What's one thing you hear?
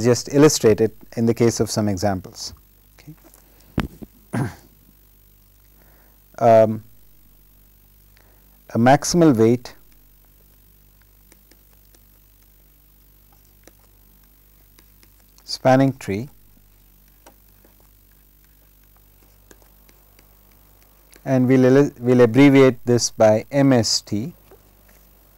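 A man speaks calmly into a clip-on microphone, in short phrases with long pauses.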